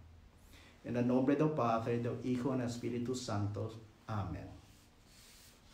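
A man speaks calmly and closely into a microphone in a slightly echoing room.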